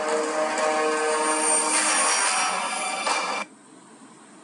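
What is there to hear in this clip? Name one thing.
Music and game sounds play loudly from a phone speaker.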